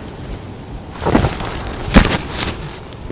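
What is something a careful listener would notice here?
A bow string snaps as an arrow is released.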